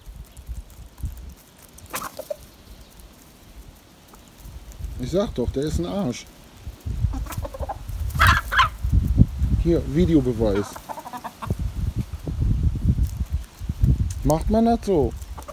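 Hens cluck softly nearby.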